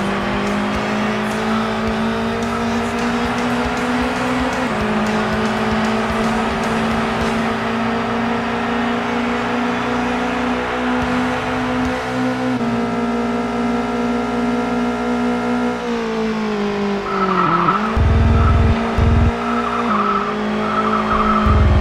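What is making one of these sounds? A racing car engine drones loudly, its pitch jumping as it shifts gears and dropping as it slows for a corner.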